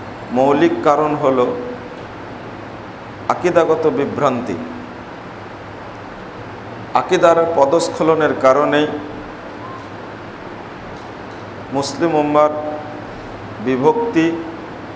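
A man speaks calmly into a microphone in short phrases with pauses, in a room with some echo.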